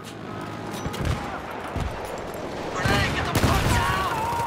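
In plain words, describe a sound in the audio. Heavy explosions boom and rumble nearby.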